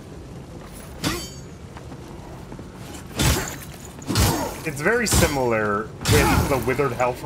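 Swords clash and strike with sharp metallic blows.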